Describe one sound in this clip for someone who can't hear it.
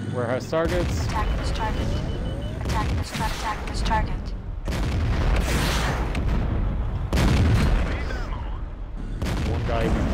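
A tank cannon fires loud, booming shots.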